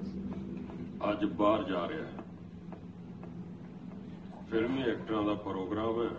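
A man speaks sternly nearby.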